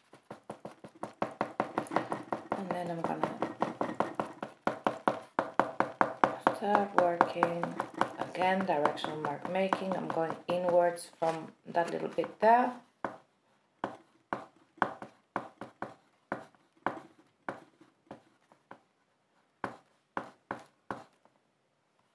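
A pastel stick dabs and scratches on paper in quick, repeated taps.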